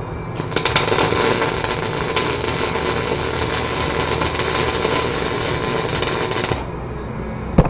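An electric welding arc crackles and hisses steadily, then stops.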